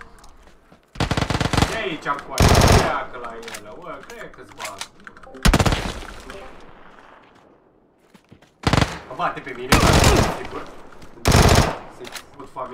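Rifle shots fire in loud rapid bursts.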